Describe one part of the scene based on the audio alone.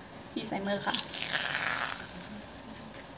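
Foam hisses out of a spray can.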